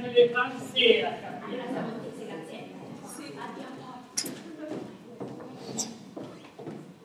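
A second young woman answers with feeling at a distance.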